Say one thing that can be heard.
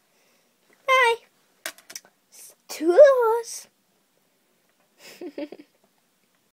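A young girl talks animatedly close to the microphone.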